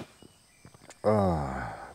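A middle-aged man speaks briefly, close by.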